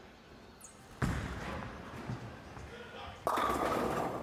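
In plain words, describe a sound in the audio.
A bowling ball thuds onto the lane and rolls.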